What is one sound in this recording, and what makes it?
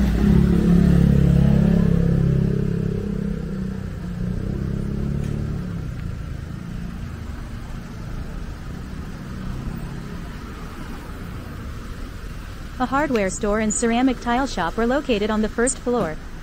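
Traffic rumbles along a city street outdoors.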